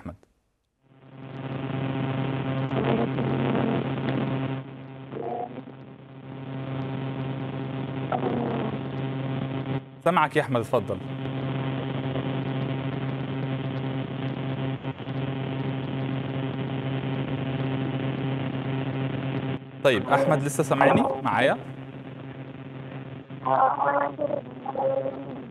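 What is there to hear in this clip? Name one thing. A boy speaks steadily over an online call.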